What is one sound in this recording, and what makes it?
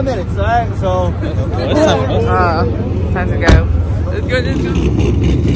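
A crowd of young men and women talk and shout outdoors.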